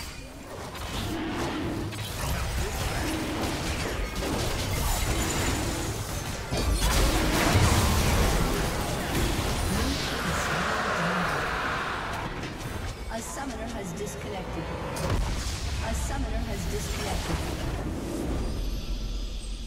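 Magic blasts crackle and burst during a fast fight.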